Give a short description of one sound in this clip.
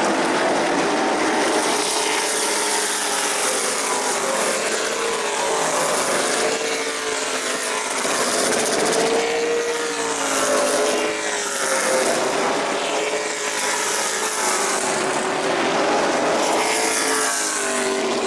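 Race car engines roar loudly as cars speed past, rising and falling in pitch.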